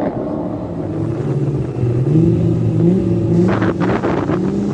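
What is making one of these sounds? A car engine idles close by and revs in uneven bursts.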